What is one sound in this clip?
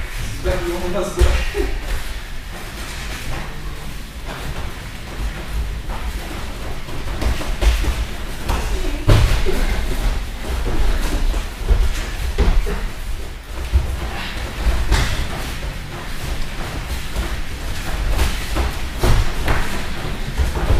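Bare feet thud and shuffle on padded mats in a large echoing hall.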